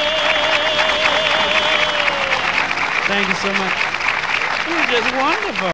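A woman sings a long, wavering note with strong vibrato, heard through an old, hissy recording.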